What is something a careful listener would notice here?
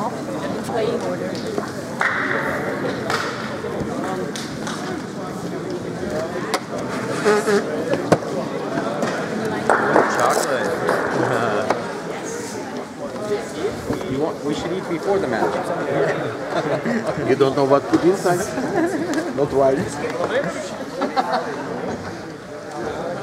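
A man talks close by in a large echoing hall.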